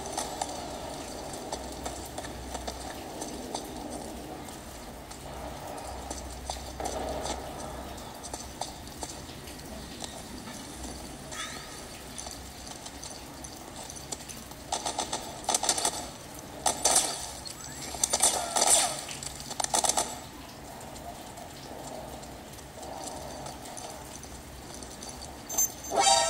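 Video game sounds play from a small handheld speaker.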